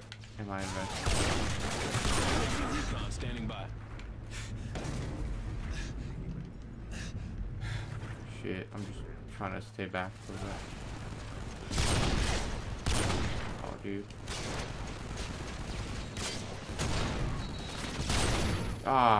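A sniper rifle fires loud, booming single shots.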